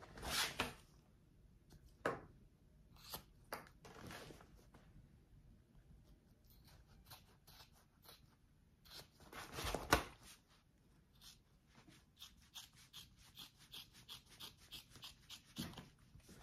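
Scissors snip through fabric in short, quick cuts.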